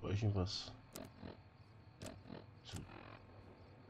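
Short menu clicks sound as selections change.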